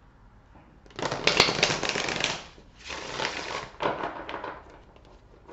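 Playing cards riffle together with a fast burst of clicking.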